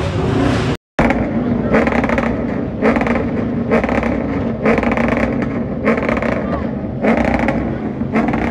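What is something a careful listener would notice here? A car engine revs loudly in repeated bursts.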